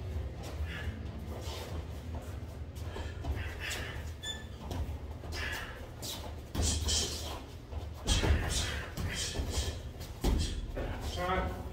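Boxing gloves thump against each other and against bodies in quick bursts.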